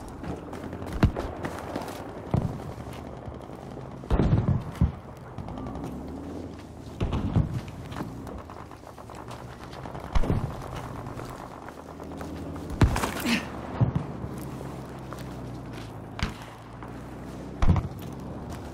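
Sniper rifle shots crack sharply every few seconds, with a short echo after each.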